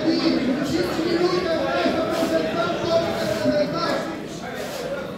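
Men and women chatter and call out in a large echoing hall.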